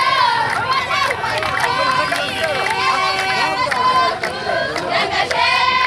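A crowd of women sing loudly together outdoors.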